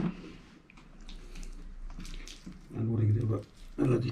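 Hands slap and knead a lump of wet clay.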